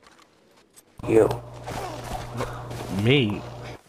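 A body falls heavily onto the ground.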